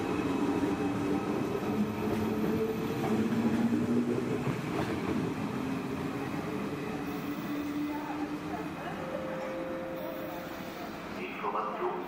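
A high-speed train rolls along the tracks, its rumble and whine slowly fading as it pulls away.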